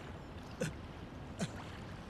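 A man whispers softly up close.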